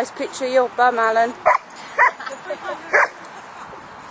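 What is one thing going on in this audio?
A dog barks excitedly close by.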